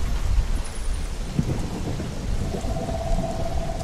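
A large creature's heavy footsteps thud on the ground.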